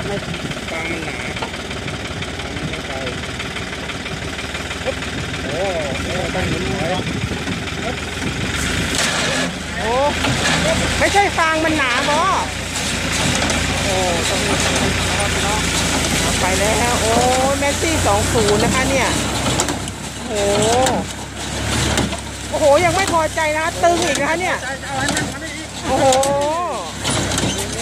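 A baler engine runs and clatters steadily outdoors.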